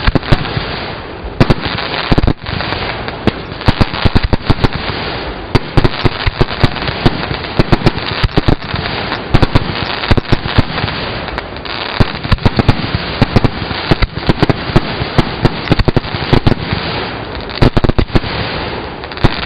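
Fireworks crackle and sizzle steadily.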